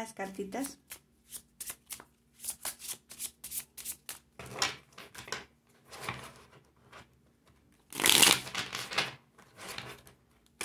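Playing cards riffle and flutter as they are shuffled by hand.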